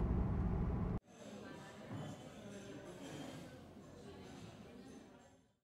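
Many people chatter in a large echoing room.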